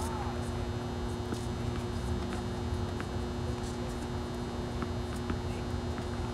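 A tennis ball is struck with a racket, with sharp pops now and then.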